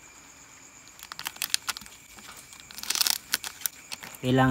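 A foil bag crinkles and rustles.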